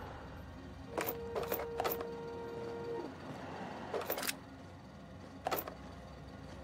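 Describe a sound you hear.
Small items are picked up with short clicks.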